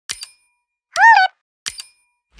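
A bright electronic chime rings briefly.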